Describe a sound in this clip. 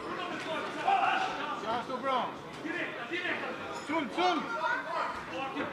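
A crowd of men shouts and cheers loudly in an echoing hall.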